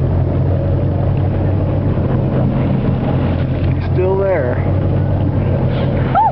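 Water splashes and churns against a moving boat.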